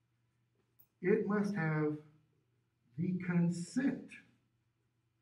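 A man speaks calmly, slightly muffled, at a short distance.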